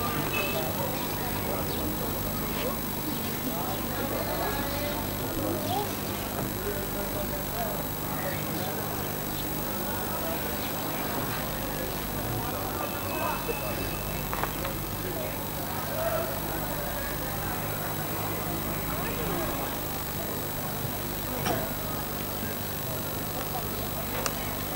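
A crowd of men murmurs and talks softly outdoors.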